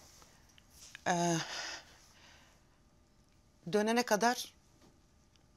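A middle-aged woman speaks calmly and close by.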